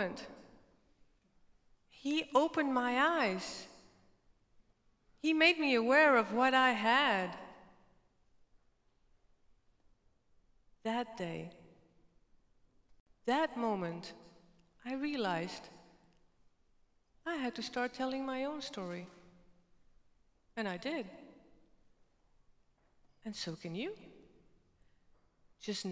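A woman speaks with animation through a microphone, in bursts with pauses.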